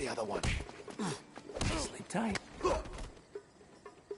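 Punches land with heavy thuds during a brawl.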